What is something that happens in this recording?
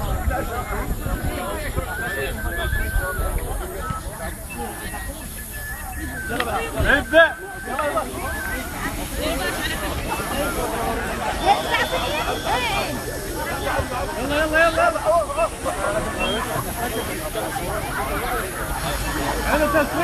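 A lively outdoor crowd of men and women chatters and cheers.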